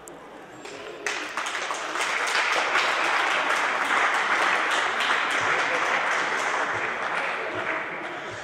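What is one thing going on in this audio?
Voices and footsteps echo through a large hall.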